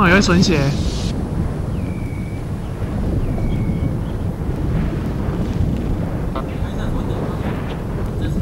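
Lava rumbles with a low, steady roar.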